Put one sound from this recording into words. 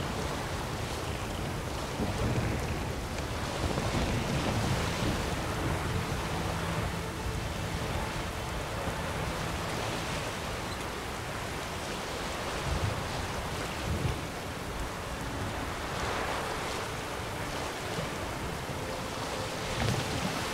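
Rough waves splash against a small sailing boat.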